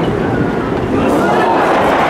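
A crowd bursts into loud cheers.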